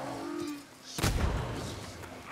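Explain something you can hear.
A gun fires a single loud shot.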